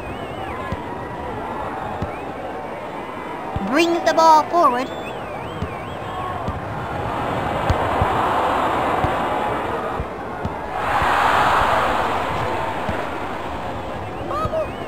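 A crowd cheers and roars, swelling at times.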